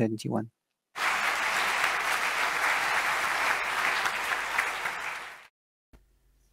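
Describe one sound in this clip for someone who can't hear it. A large crowd applauds in a big echoing hall.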